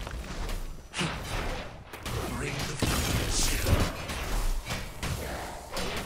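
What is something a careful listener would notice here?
Weapons clash and magic blasts burst in a fight.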